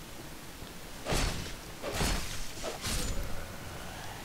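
Blades clash and strike in a short fight.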